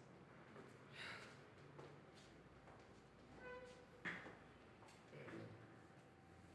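A man chuckles softly to himself.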